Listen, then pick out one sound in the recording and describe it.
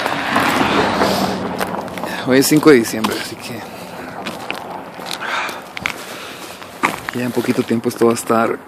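Footsteps scuff along a paved roadside.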